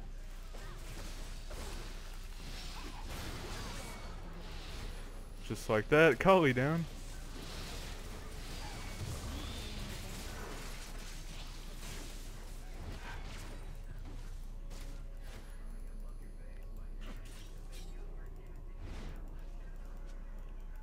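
Game hits and clicks sound repeatedly.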